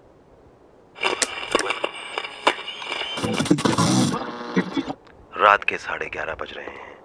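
A radio plays music loudly.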